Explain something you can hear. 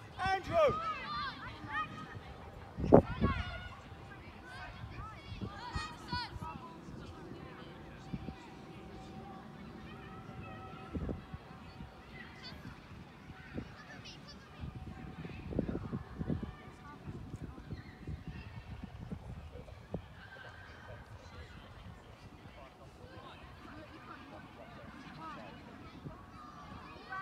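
Children shout and call out across an open outdoor field.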